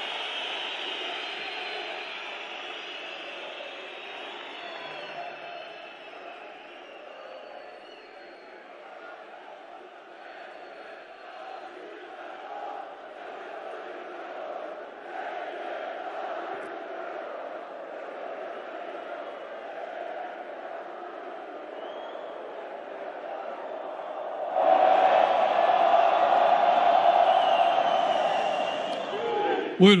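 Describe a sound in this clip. A large crowd cheers and chants in a huge echoing hall, growing much louder near the end.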